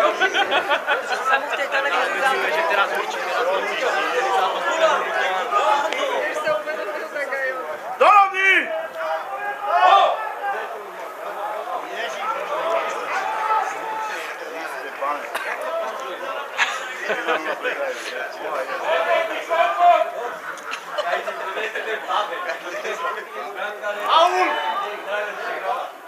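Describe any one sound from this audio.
Several men chatter nearby on an open field, close to the microphone.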